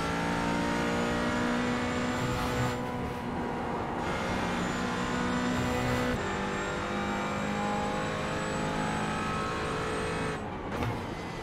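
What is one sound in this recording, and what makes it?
A racing car engine roars at high revs, shifting gears as it speeds along.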